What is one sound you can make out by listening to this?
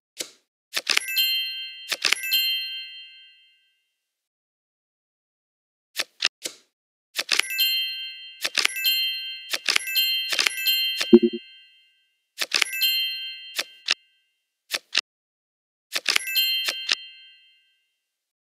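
Cards flick and snap into place with short chiming tones.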